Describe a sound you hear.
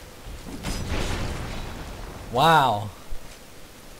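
Heavy metal armour clanks and thuds as a body falls to the ground.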